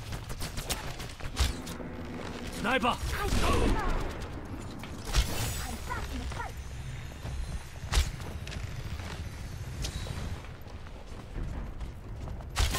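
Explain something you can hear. A bowstring twangs as arrows fly.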